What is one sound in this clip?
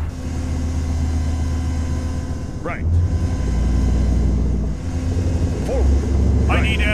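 A heavy vehicle engine rumbles low and steady.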